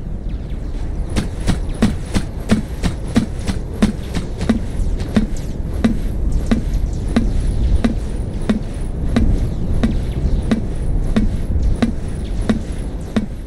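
Footsteps clank steadily on a metal floor.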